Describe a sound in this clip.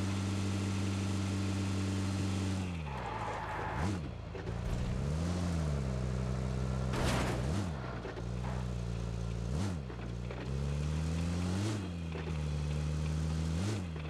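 A vehicle engine hums steadily, rising and falling in pitch as it revs and shifts gears.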